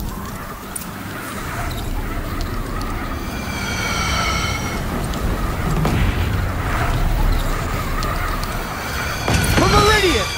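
Fires roar and crackle.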